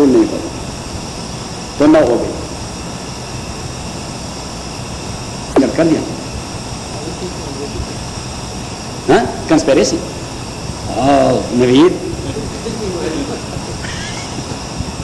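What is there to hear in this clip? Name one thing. Traffic hums steadily on a city street.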